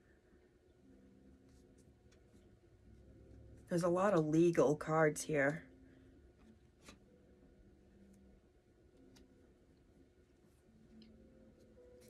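Playing cards rustle and slide as they are shuffled.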